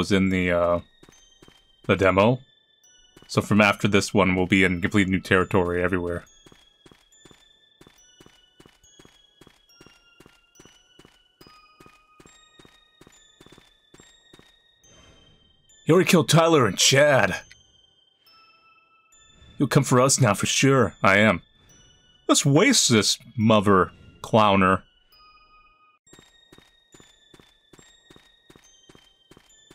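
Footsteps tap steadily at a walking pace.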